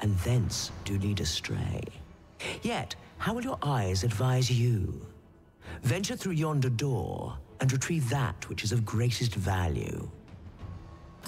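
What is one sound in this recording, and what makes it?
A woman speaks slowly and theatrically, her voice echoing.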